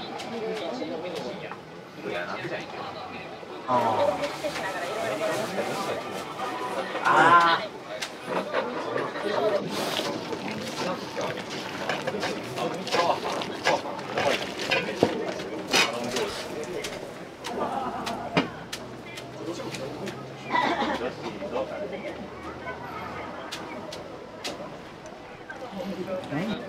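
A pot of liquid bubbles and steams steadily.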